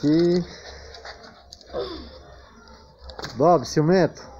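Small dogs growl and yelp as they play-fight.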